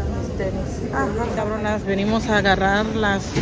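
A woman speaks close by with animation.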